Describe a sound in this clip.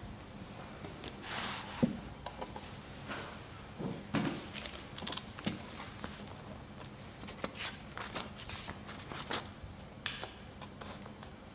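A man speaks quietly in an echoing room.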